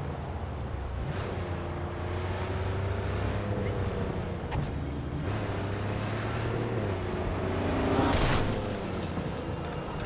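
A car engine hums steadily and shifts in pitch as the car speeds along.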